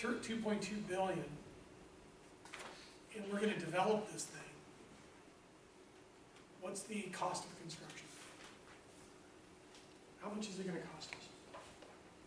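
A middle-aged man speaks calmly in a room, with pauses.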